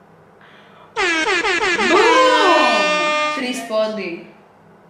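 A young woman shrieks loudly in surprise.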